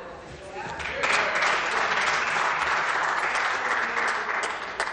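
A crowd applauds in a large hall.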